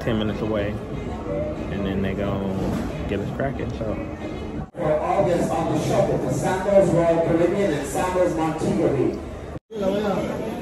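A man talks casually, close to the microphone.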